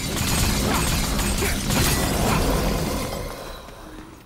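A loud magical burst roars and crackles.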